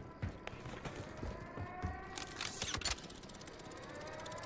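Footsteps thud on a hard roof.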